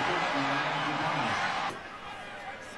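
A stadium crowd cheers loudly outdoors.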